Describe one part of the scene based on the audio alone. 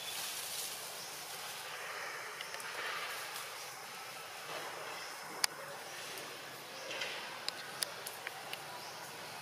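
Monkeys rustle and shift among tree branches.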